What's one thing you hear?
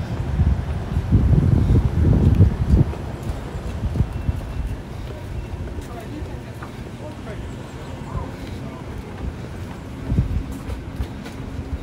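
Footsteps walk on a paved path.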